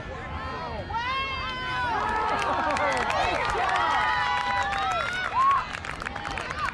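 Children shout and cheer loudly nearby.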